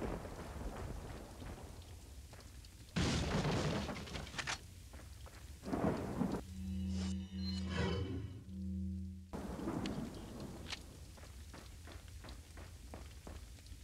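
Footsteps crunch on a rough floor.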